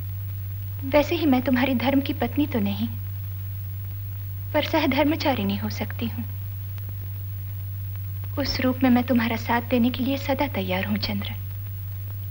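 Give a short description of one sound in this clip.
A woman speaks calmly nearby, in short phrases with pauses.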